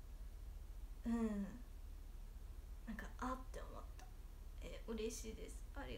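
A young woman speaks softly and close by, in short bursts.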